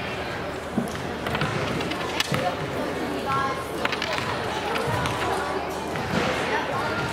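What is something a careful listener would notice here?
Girls and adults chatter in a large echoing gym.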